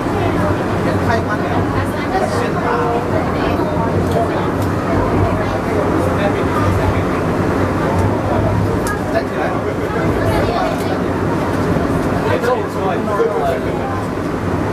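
A cable car rumbles steadily as it rolls down its rails.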